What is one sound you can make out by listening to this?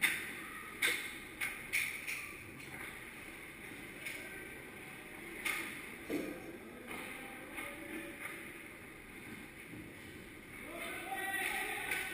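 Hockey sticks and pucks clack and knock in a large echoing rink.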